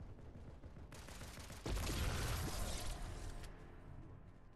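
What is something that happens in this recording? Gunfire and blasts ring out in a video game.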